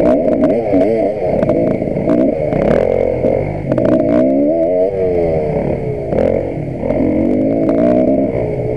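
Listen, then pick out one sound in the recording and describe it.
Stones and branches knock against a dirt bike as it bounces over rough ground.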